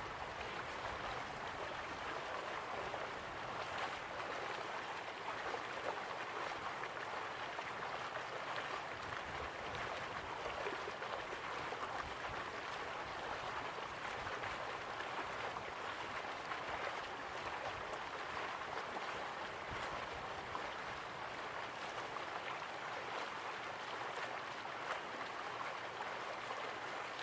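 Waterfalls rush steadily in the distance.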